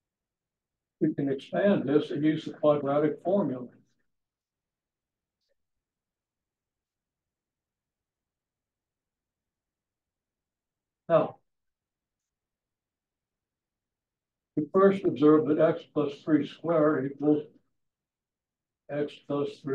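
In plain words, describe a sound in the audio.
A man speaks calmly in pauses, as if lecturing.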